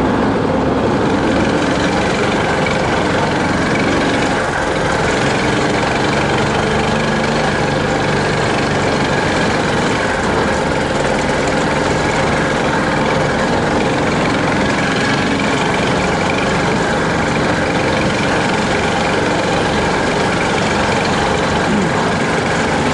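An off-road vehicle's engine drones loudly and steadily.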